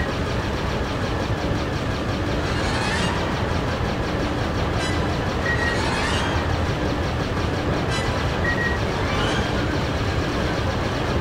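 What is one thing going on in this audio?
Explosions boom as ships are hit.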